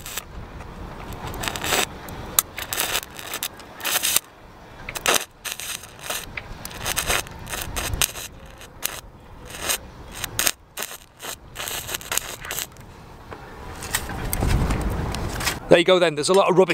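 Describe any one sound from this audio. An electric welder crackles and sputters in short bursts.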